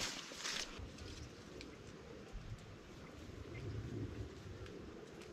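Leafy branches rustle and snap as a person pushes through dense plants.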